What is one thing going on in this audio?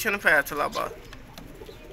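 A pigeon flaps its wings briefly.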